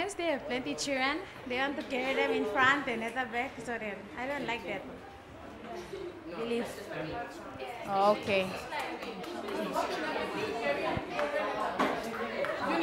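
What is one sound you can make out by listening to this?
A teenage girl speaks cheerfully into a microphone, close up.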